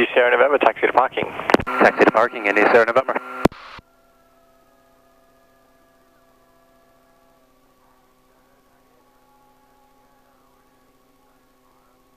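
An aircraft engine hums steadily.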